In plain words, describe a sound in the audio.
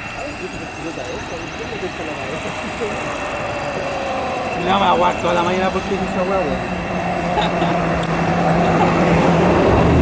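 Jet engines whine and roar steadily as aircraft taxi nearby, growing louder.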